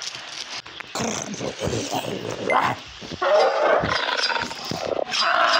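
A large dinosaur roars loudly.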